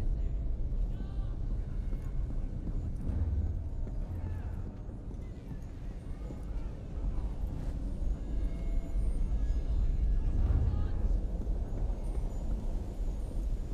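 Footsteps creep softly over creaking wooden boards.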